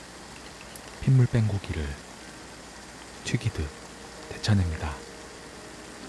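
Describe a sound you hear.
Pieces of meat drop into boiling water with heavy splashes.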